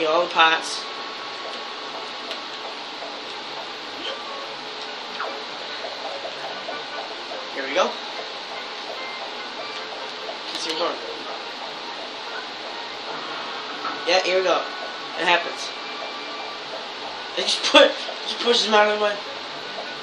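Short game sound effects burst out of a television speaker now and then.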